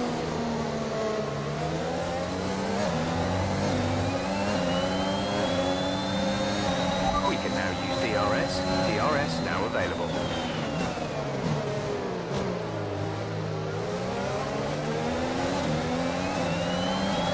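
Other racing car engines whine nearby.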